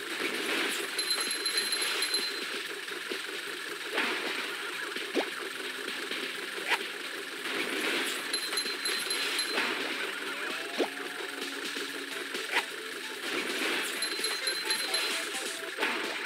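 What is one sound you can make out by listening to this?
Short bright chimes ring out now and then.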